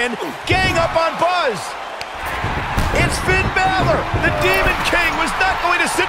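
Bodies thud heavily onto a wrestling ring mat.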